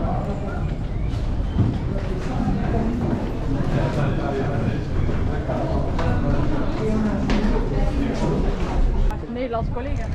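Men and women chatter in an echoing room.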